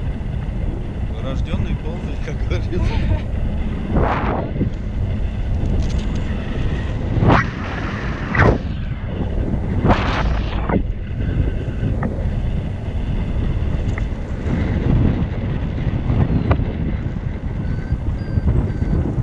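Strong wind rushes and buffets against a microphone.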